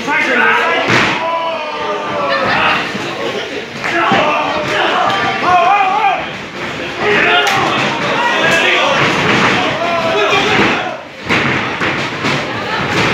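Bodies thud heavily onto a ring mat.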